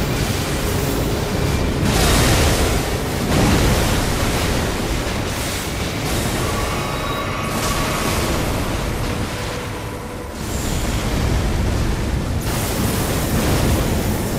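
Magic blasts boom and crackle loudly.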